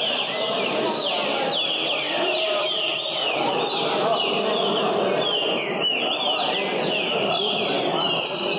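A crowd of men murmurs in the background.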